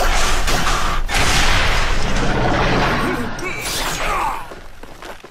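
A monster roars loudly and fiercely.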